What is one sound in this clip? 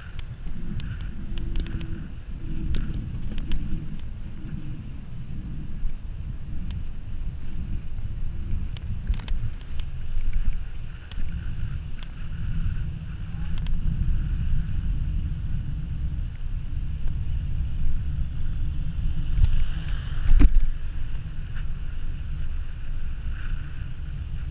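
Wind rumbles and buffets loudly across the microphone.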